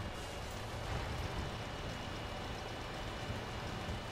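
A tree cracks and crashes as a tank pushes it over.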